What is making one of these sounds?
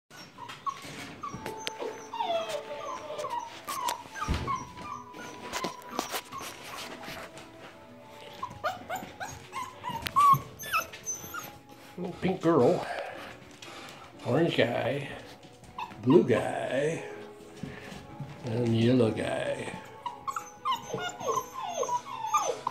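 Young puppies whine and yelp.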